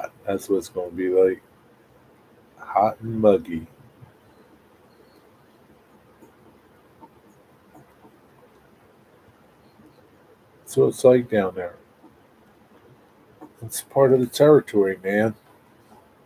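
A middle-aged man speaks calmly and close by, in short bursts with long pauses.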